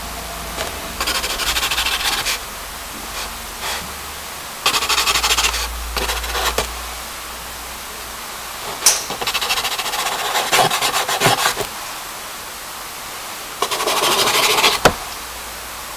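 A pen scratches across paper in short bursts.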